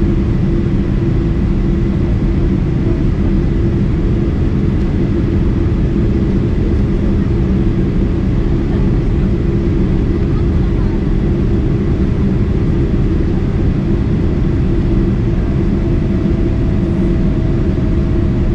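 Jet engines roar in a steady, low drone inside an airliner cabin.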